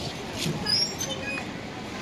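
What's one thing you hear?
A playground swing creaks as it moves.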